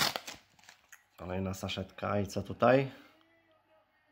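Trading cards rustle and slide against each other as they are handled.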